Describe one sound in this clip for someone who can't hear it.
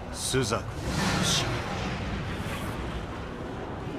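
Flames roar with a low rumble.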